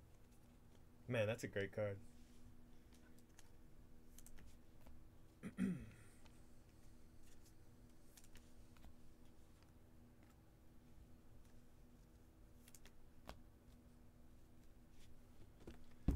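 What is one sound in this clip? Cards slide and tap against each other in someone's hands.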